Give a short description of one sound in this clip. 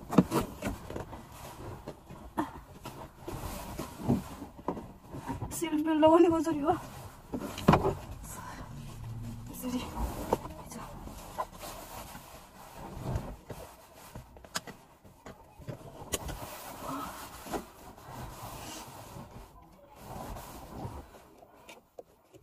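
Clothing rustles and bumps close by.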